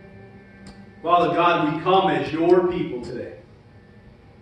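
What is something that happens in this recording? A man speaks briefly through a microphone in a large room.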